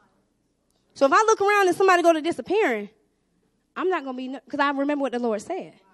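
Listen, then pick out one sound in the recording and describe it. A woman speaks with animation through a microphone and loudspeakers.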